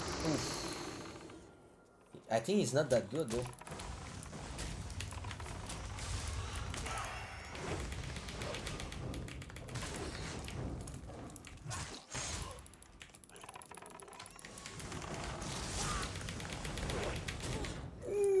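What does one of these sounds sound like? Fantasy game combat sound effects clash and thud.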